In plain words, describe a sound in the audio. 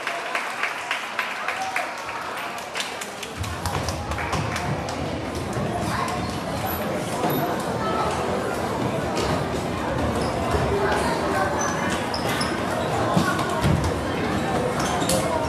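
A crowd of children chatters in a large echoing hall.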